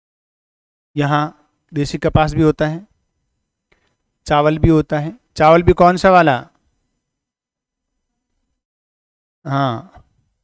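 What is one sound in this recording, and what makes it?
A middle-aged man speaks calmly and clearly into a clip-on microphone, explaining in short phrases.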